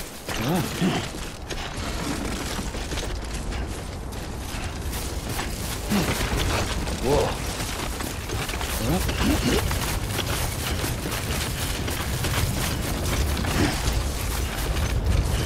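Footsteps crunch and shuffle over grassy ground.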